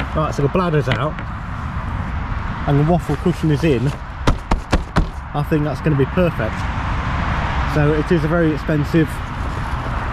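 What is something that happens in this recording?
A hand pats a padded fabric cushion.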